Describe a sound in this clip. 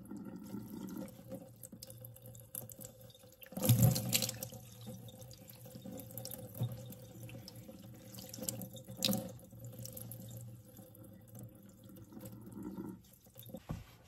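Water pours and splashes over wet hair.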